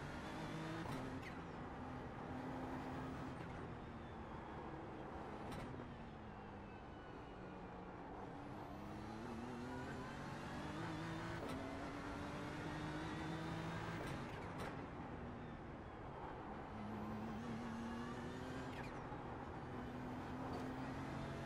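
A race car engine revs high and drops as it shifts gears.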